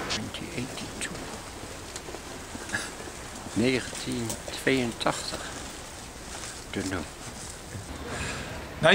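An elderly man speaks close by in a casual, cheerful way.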